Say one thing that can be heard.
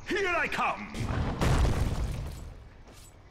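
A game spell bursts with a loud whoosh.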